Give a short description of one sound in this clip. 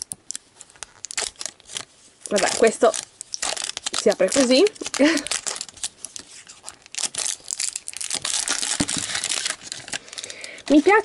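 Plastic wrapping crinkles and rustles as hands peel it off.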